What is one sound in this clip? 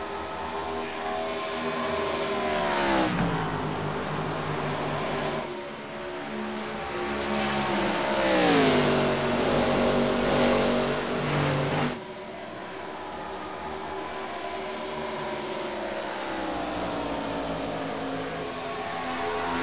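Race car engines roar at high speed and sweep past with a falling pitch.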